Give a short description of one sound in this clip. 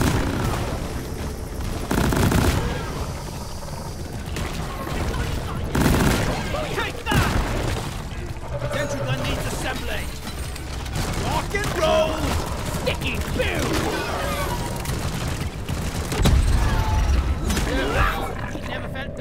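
Laser guns fire in loud bursts.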